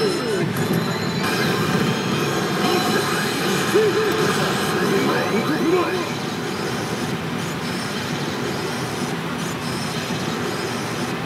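Small metal balls clatter steadily through a pachinko machine.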